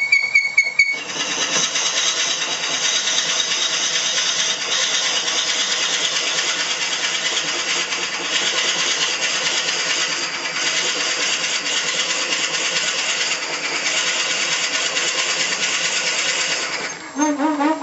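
A lathe bores into spinning wood with a loud, harsh scraping whir.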